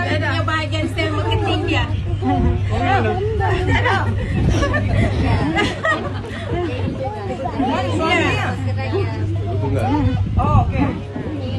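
A middle-aged woman talks and laughs with animation.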